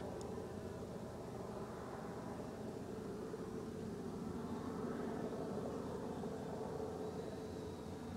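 A bee buzzes softly among flowers.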